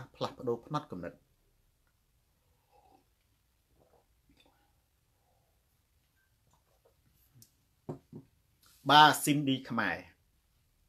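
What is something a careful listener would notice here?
A man speaks calmly close to a microphone.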